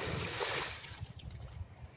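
A heavy object splashes into water close by.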